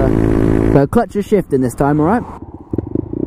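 A motorcycle engine revs sharply in quick bursts.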